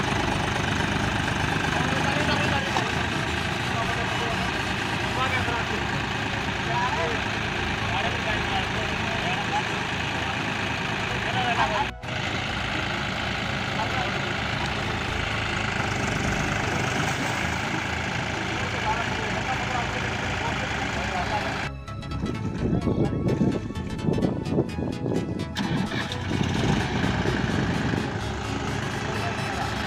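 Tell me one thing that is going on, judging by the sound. Tractor wheels churn and splash through deep mud.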